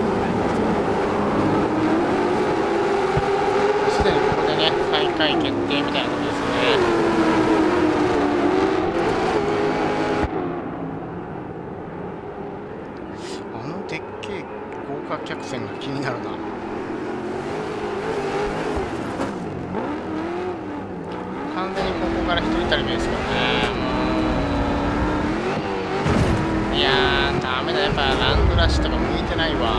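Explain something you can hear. Racing truck engines roar and rev up and down.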